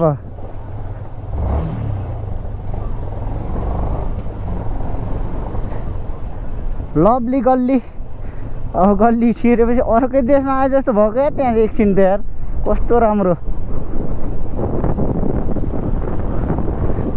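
A motorcycle engine rumbles low and steady while riding slowly.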